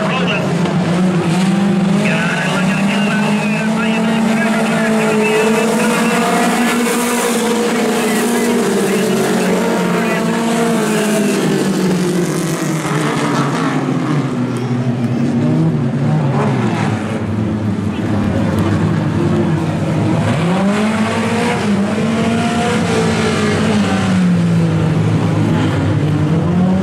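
Race car engines roar loudly and rev up and down.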